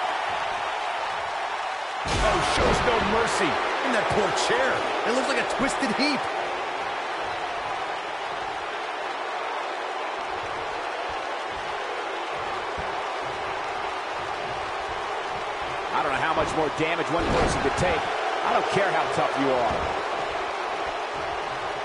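A large crowd cheers and murmurs steadily in a big arena.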